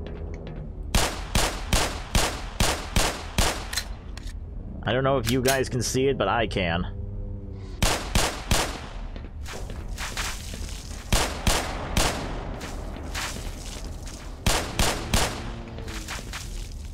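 Pistol shots fire in quick bursts, echoing sharply.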